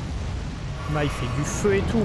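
Flames roar in a burst of fire.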